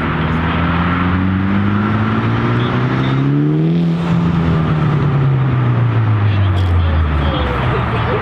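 A car engine revs up loudly, then its pitch slowly drops.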